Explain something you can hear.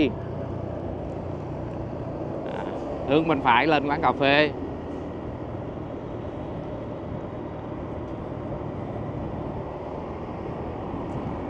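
A bus engine rumbles nearby.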